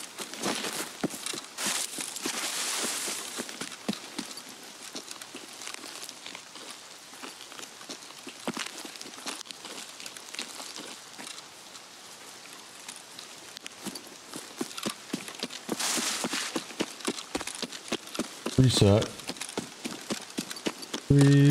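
Footsteps crunch steadily on grass and gravel.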